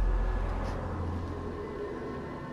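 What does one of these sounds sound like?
A rope whirs as a figure slides down it.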